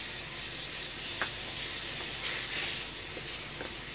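Chopsticks tap and scrape inside a metal pan.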